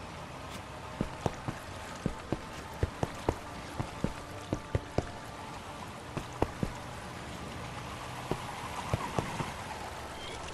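A game character's footsteps tap on stone.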